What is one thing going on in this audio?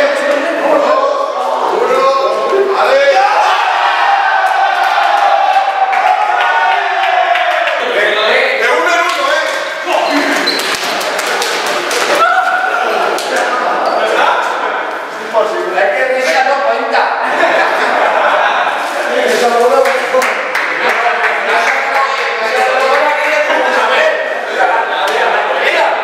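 A group of young men cheer and shout loudly in an echoing room.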